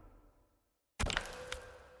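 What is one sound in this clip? A menu selection clicks softly.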